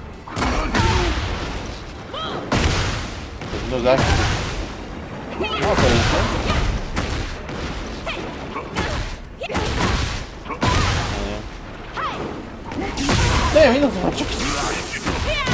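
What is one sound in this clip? Crackling energy bursts whoosh and flare.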